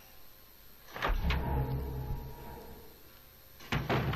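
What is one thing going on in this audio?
A heavy wooden door creaks open with a low rumble.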